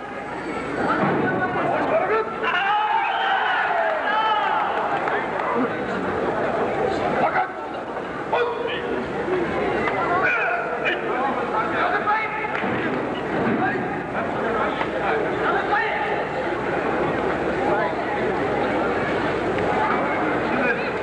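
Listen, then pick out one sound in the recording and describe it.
Many voices of a crowd chatter and call out in a large echoing hall.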